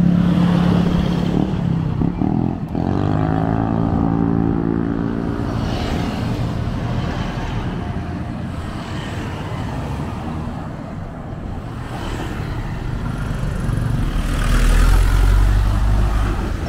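Motorcycles buzz past nearby.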